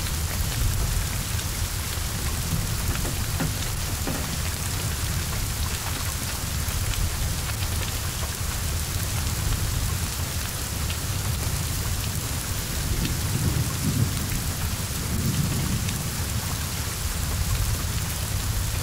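Flames roar and crackle from a burning car.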